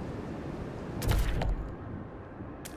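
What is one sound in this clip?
A low whoosh sweeps in as the view changes.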